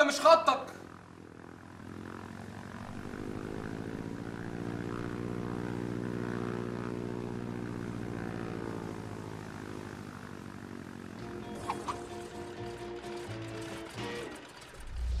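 A small propeller plane drones overhead, rising and falling in pitch.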